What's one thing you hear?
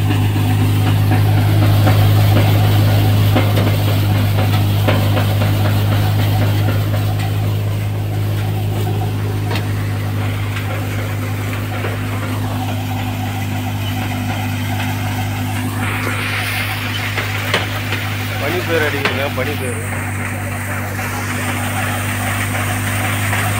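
A threshing machine engine drones steadily and loudly.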